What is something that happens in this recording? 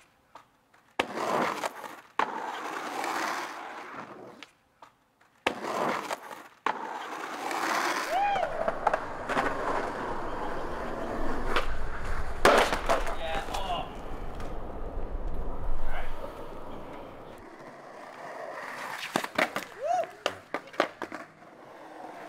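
A skateboard clacks and slaps sharply against concrete.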